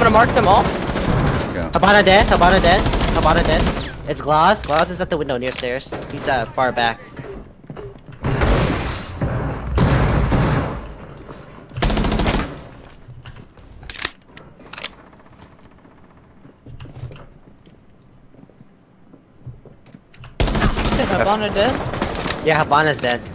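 Rapid gunfire rings out in short bursts.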